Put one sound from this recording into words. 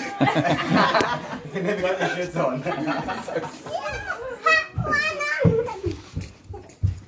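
Several adults chatter and laugh close by.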